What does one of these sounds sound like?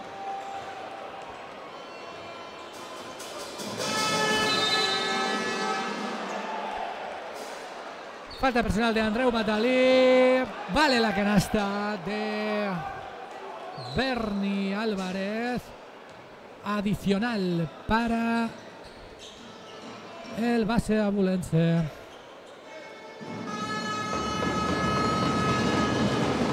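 A large crowd cheers and chants in a big echoing hall.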